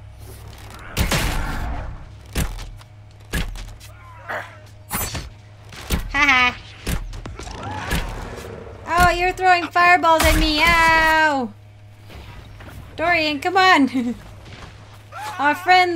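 Magic blasts crackle and boom in sharp bursts.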